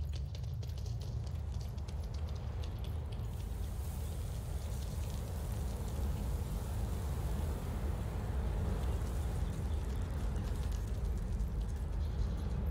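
Footsteps run on stone paving.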